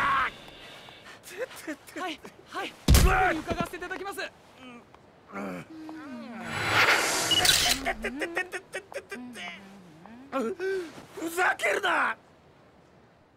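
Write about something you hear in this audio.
A man cries out in pain and groans.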